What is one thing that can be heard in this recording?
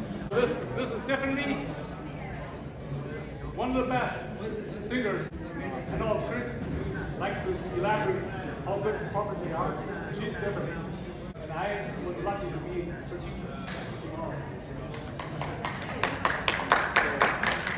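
An older man speaks with animation in a room with some echo.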